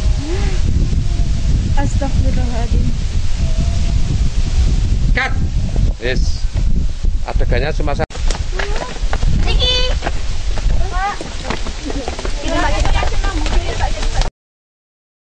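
Teenage girls talk and laugh close by.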